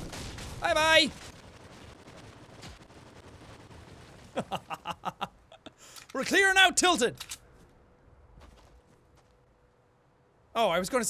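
A young man talks animatedly and exclaims close to a microphone.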